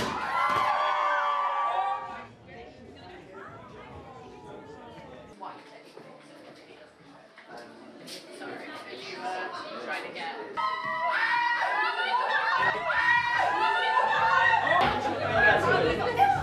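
A crowd cheers and screams excitedly.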